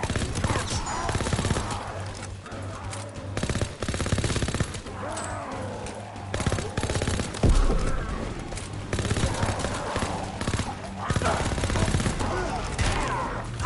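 A gun is reloaded with metallic clicks.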